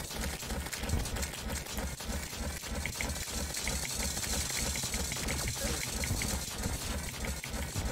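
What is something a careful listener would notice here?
Game hit sounds crackle as enemies are struck.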